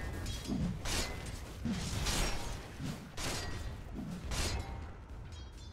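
Spell effects whoosh and crackle in repeated bursts.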